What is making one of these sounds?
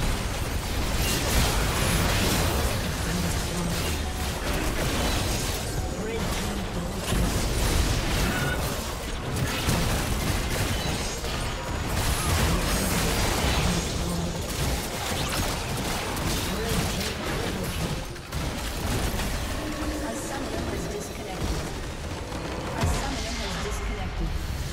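Spell blasts and attacks crackle and boom in a busy game battle.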